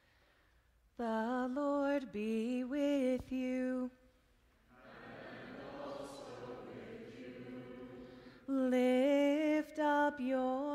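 A man chants loudly through a microphone in a large echoing church.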